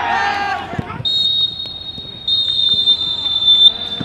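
A referee's whistle blows in long shrill blasts.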